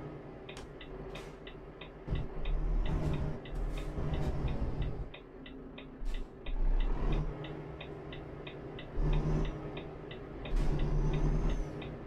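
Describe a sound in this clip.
A truck engine rumbles low, swelling and easing in bursts.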